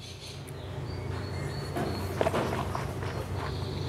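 A man sips wine from a glass.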